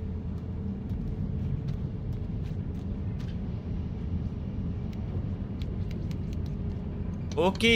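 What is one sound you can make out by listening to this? Small footsteps tap on a hard surface.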